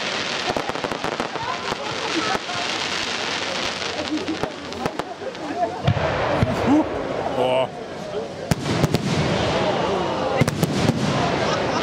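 Fireworks crackle and fizz in the sky.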